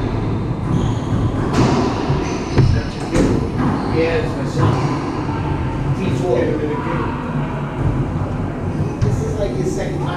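Shoes squeak and thud on a wooden floor.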